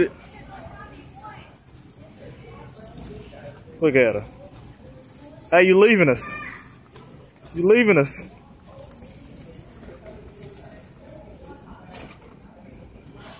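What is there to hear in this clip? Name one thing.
A shopping cart rattles as it rolls over a smooth floor.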